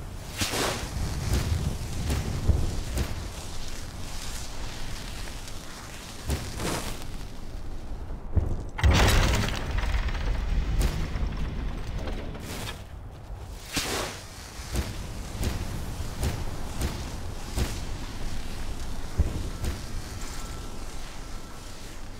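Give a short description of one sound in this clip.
Footsteps crunch over grass and stone.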